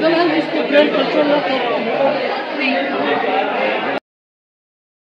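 A man explains calmly and closely to a small group.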